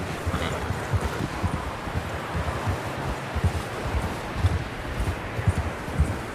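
Horse hooves thud steadily through snow.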